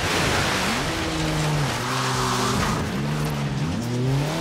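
Tyres skid and scrape over loose dirt.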